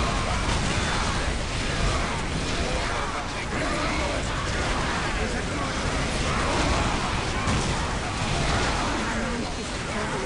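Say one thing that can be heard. Flamethrowers roar.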